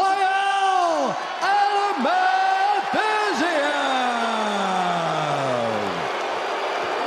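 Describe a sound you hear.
A man announces loudly through a microphone over an arena's loudspeakers.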